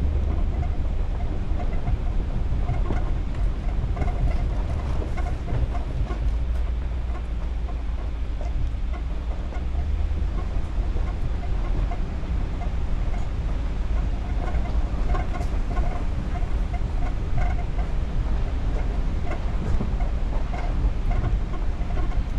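Tyres crunch and rattle over a gravel track.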